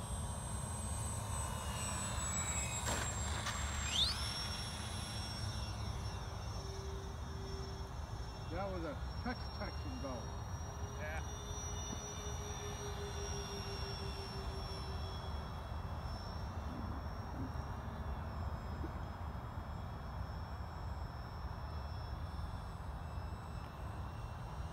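A model plane's engine whines loudly as it speeds along and takes off, then drones overhead as it flies away and fades.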